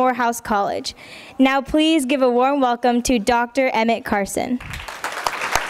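A girl speaks into a microphone.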